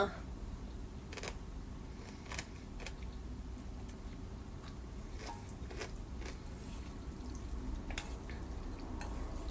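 A young woman slurps noodles close up.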